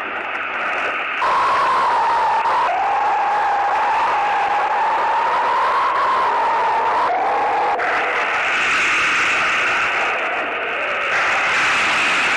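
A crowd of men murmurs and shouts outdoors.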